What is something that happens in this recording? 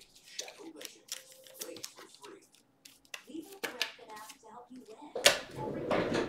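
A plastic wrapper crinkles in someone's hands.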